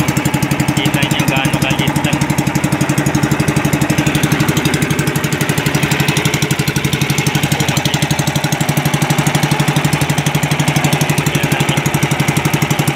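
A boat engine drones loudly and steadily close by.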